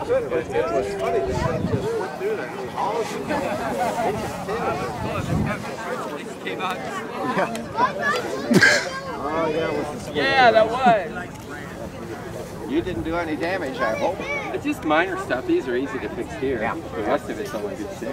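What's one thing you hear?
Several men talk casually nearby, outdoors.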